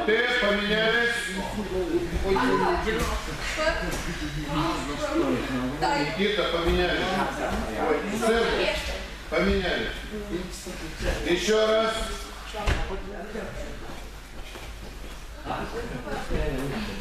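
Bodies thump onto padded mats.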